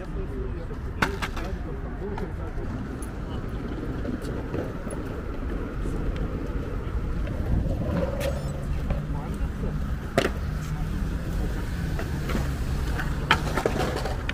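Skateboards clack against the pavement.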